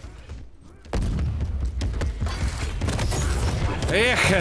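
A loud explosion roars in a video game.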